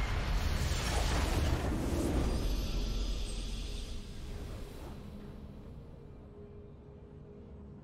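Triumphant game music swells and fades.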